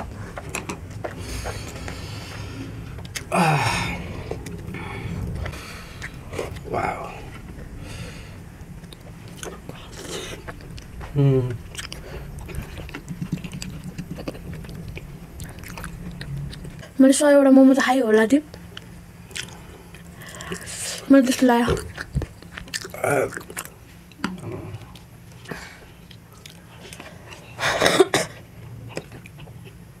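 A young woman chews and slurps close to a microphone.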